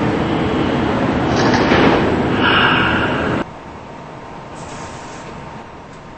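A subway train hums while standing still.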